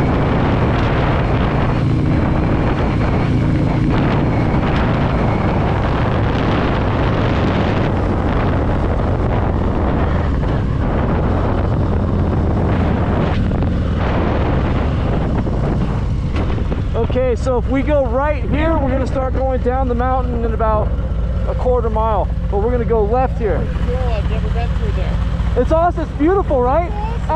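Wind roars against a helmet microphone.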